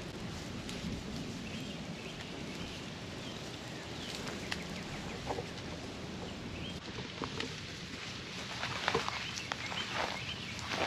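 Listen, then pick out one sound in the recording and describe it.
Goats tear and chew at leafy branches.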